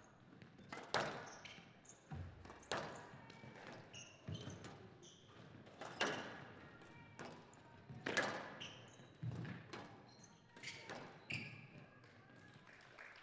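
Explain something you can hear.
Rubber shoes squeak sharply on a court floor.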